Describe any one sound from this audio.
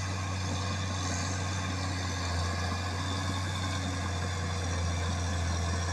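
Earth and rocks scrape and crumble under a bulldozer blade.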